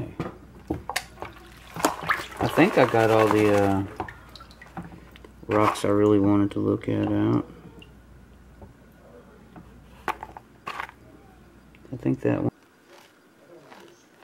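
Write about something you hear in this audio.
Water splashes and swirls in a plastic pan.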